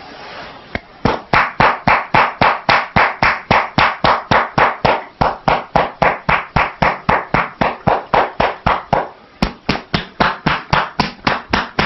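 Hands pat and tap rhythmically and briskly on a person's head and shoulders.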